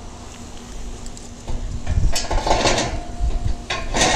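A metal rod clanks against a steel drum.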